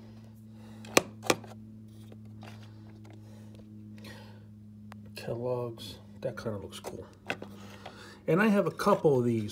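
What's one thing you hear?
Small plastic toy trucks click and tap as they are handled.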